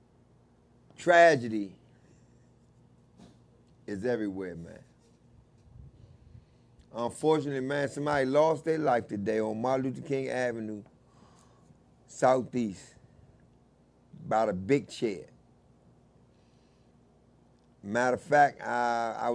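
A middle-aged man speaks into a close microphone with animation, pausing between phrases.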